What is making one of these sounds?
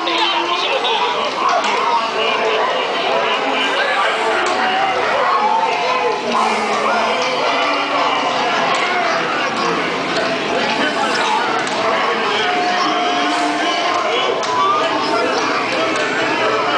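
A crowd of men and women chatter loudly all around in a busy, echoing space.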